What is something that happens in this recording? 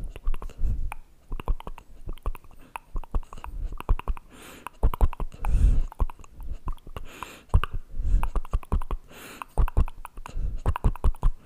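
A man makes wet mouth clicks very close to a microphone.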